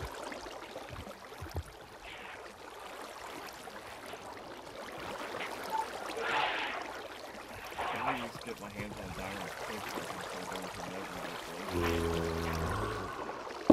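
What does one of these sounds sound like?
Water flows and trickles steadily.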